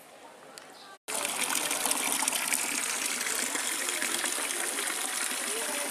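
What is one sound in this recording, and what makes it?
Water pours steadily from a fountain spout into a pool.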